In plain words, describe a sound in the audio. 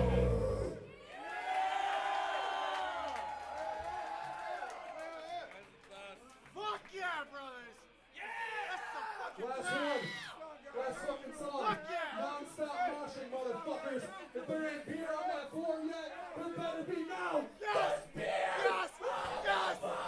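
A man screams into a microphone over loud amplification.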